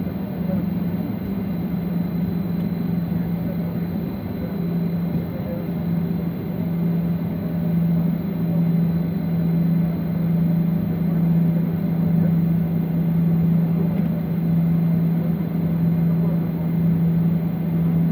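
A jet engine hums steadily inside an aircraft cabin as the plane taxis.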